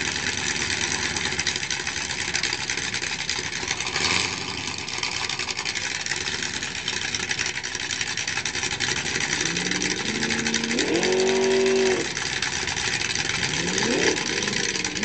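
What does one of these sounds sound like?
A car engine idles with a loud, rough rumble close by.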